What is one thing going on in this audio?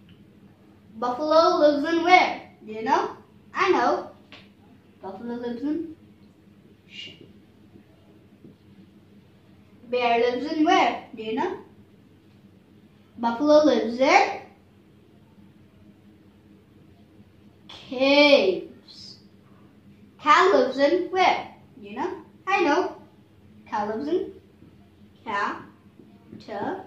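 A young boy speaks clearly and calmly close by, in short phrases with pauses.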